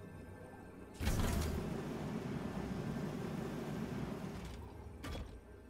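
A game sound effect whooshes and rumbles as a card is played.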